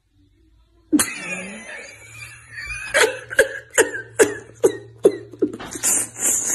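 A man laughs loudly in short bursts close by.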